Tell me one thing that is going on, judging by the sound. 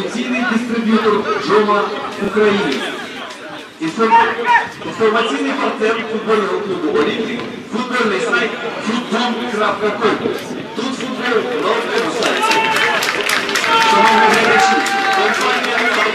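Men shout to each other across an open pitch outdoors.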